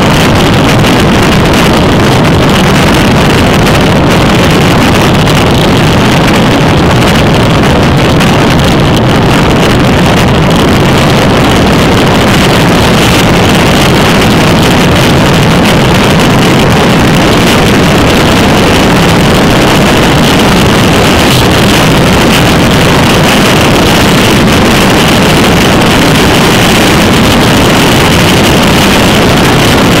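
Wind roars loudly past a fast-moving bicycle.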